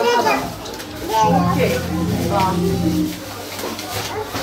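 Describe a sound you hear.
Plastic wrapping rustles in hands.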